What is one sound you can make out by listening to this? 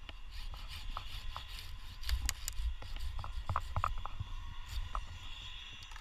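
A hand saw rasps through a branch.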